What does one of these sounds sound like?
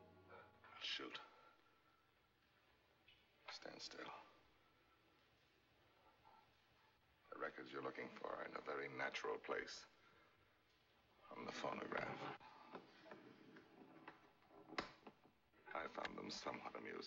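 A man speaks calmly from across a room.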